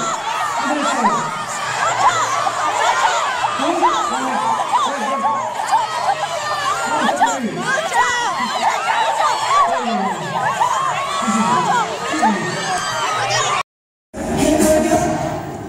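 A large crowd of young people screams and cheers loudly and without a break.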